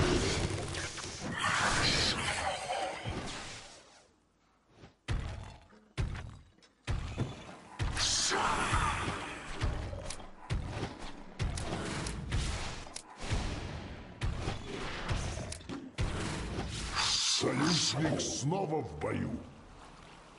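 Magic spells burst and crackle in quick, sharp blasts.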